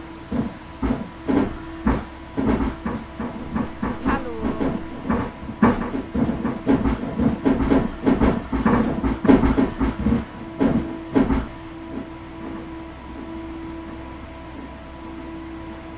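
A train hums steadily as it rolls along.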